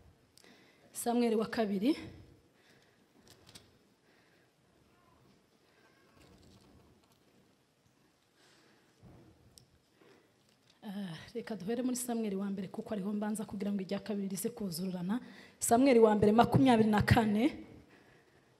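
A young woman speaks calmly into a microphone, with long pauses.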